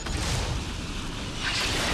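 A heavy gun fires with a loud blast.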